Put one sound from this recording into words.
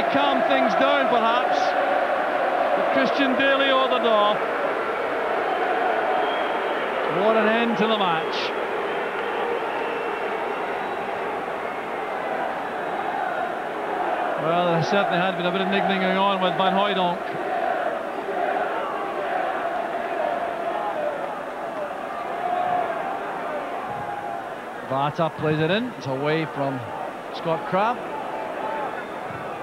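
A large stadium crowd murmurs and roars outdoors.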